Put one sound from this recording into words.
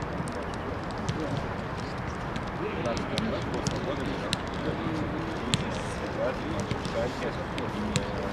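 Men talk and call out in the distance, outdoors.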